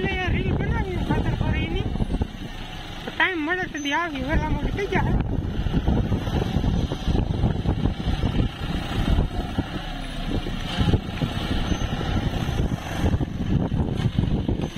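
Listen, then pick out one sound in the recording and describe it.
A tractor engine rumbles and chugs close by.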